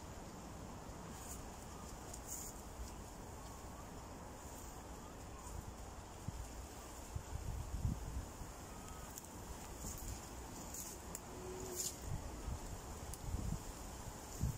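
A heavy sack of earth scrapes and thumps as it is dragged over the ground.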